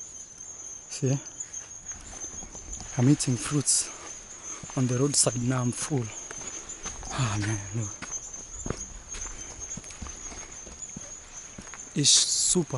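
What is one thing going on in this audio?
A young man speaks calmly close to the microphone in short phrases.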